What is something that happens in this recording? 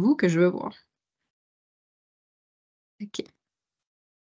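Another woman speaks briefly over an online call.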